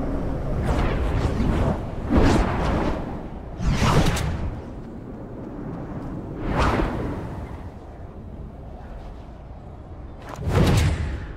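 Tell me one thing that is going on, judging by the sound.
Wind rushes past in loud whooshing gusts during a fall.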